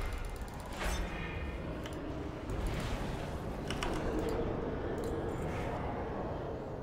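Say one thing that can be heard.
Magical spell effects whoosh and chime.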